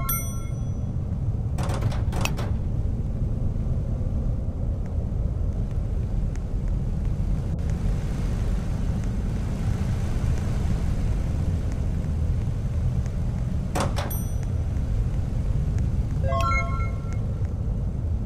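A short electronic chime rings out.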